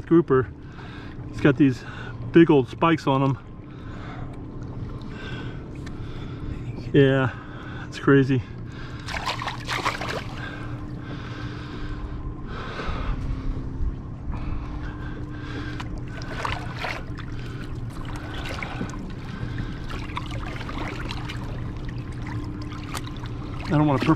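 Water splashes softly.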